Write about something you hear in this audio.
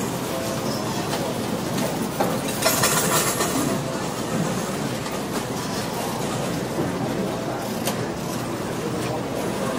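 Slot machines chime and jingle.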